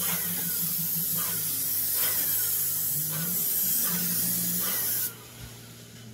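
A paint sprayer hisses loudly and steadily.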